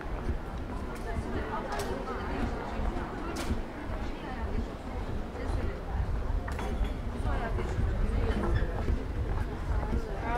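A crowd of men and women chat all around.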